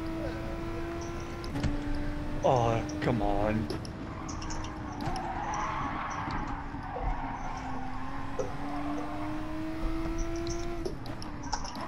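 A racing car engine drones steadily, its pitch dipping and climbing as the gears change.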